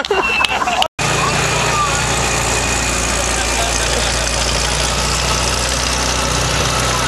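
A tank engine rumbles steadily close by.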